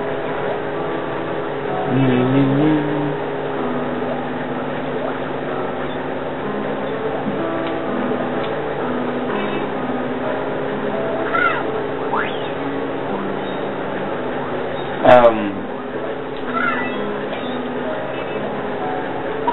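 Cheerful game music plays steadily.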